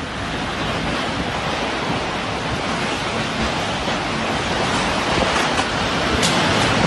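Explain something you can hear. A violent wind roars loudly and steadily outdoors.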